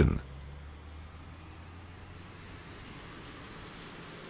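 A large truck engine rumbles loudly as it drives past.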